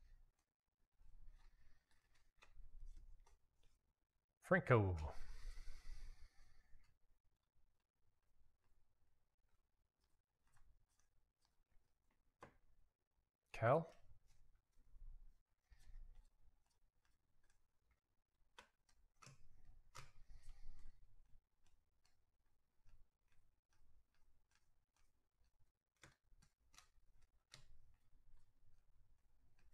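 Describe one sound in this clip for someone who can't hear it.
Trading cards shuffle and flick softly between hands.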